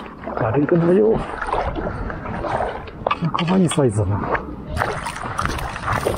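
A small fish splashes and flips in shallow water.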